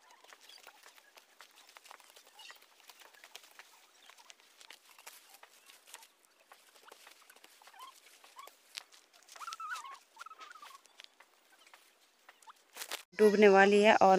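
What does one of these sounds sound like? Dry grass stems rustle and snap as they are cut by hand.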